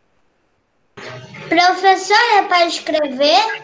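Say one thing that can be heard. A young girl speaks through an online call.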